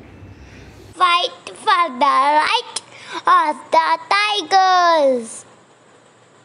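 A young child speaks loudly and clearly, close by.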